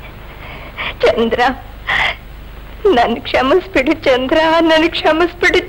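A young woman speaks pleadingly and emotionally, close by.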